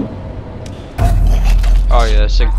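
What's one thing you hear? A sudden heavy blow lands during a brief scuffle.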